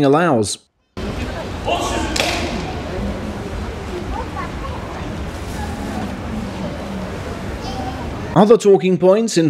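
A large crowd murmurs in a big echoing hall.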